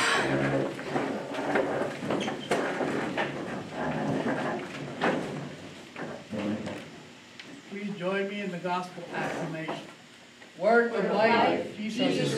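An older man speaks calmly, as if reading aloud, in a room with some echo.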